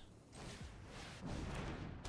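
A magical whooshing effect sweeps across.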